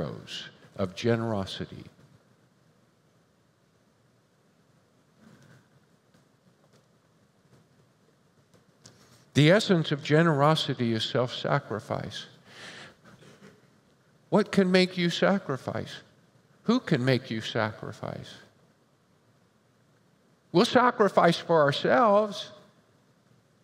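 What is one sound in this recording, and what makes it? An older man speaks calmly into a headset microphone, with pauses.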